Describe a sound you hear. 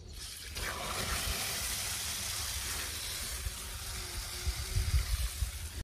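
Water sprays steadily from a garden hose nozzle onto soil.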